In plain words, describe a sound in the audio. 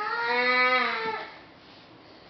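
A baby squeals in a high, sing-song voice nearby.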